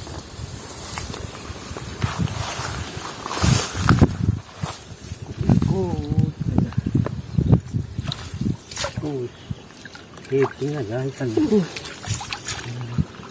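Tall grass rustles and swishes close by.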